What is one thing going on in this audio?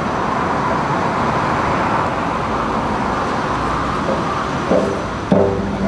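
Acoustic guitars play outdoors.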